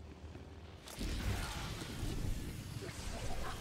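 Crackling lightning buzzes loudly.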